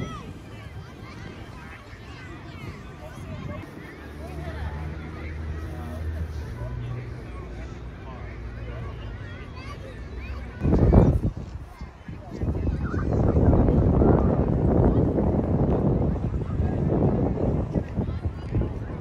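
A crowd of adults chatters faintly at a distance outdoors.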